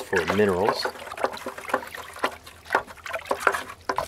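A hand stirs and sloshes water in a bucket.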